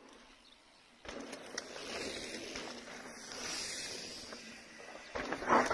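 Mountain bike tyres roll over dry ground.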